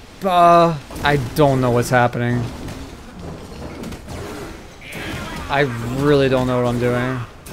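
Heavy punches thud in quick succession.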